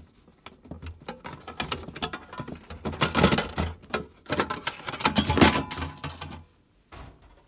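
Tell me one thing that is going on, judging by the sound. A plastic casing clatters and rattles as it is pried open by hand.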